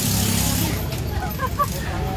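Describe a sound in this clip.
Young women chat nearby.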